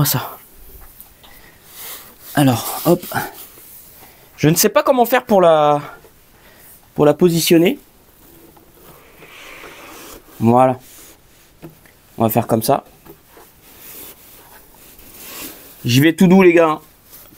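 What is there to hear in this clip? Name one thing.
Cardboard and plastic foam rustle and scrape as a box is handled.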